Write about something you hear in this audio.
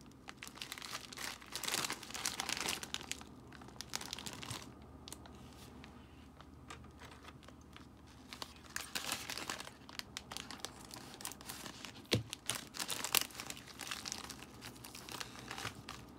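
A plastic bag crinkles and rustles in hands close by.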